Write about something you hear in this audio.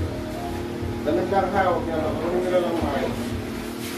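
A plastic chair scrapes on the floor.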